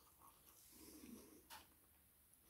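A man blows out a breath close by.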